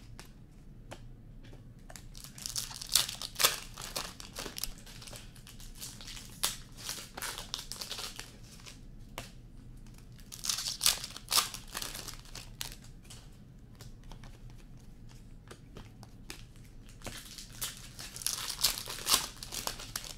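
Trading cards slap onto a table.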